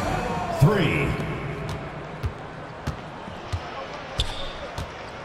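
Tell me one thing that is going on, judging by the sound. A crowd murmurs in a large arena.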